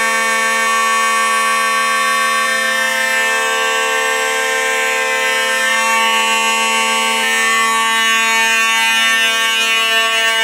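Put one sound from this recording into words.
A fire alarm bell rings loudly and steadily.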